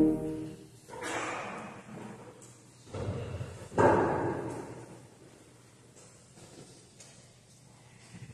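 A man speaks from a distance in a large echoing hall.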